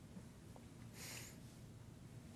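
A marker squeaks briefly on paper.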